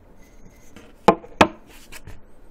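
A yo-yo knocks twice against a hard table.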